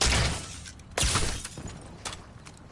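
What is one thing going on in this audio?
A loud explosion bursts with a hiss of smoke.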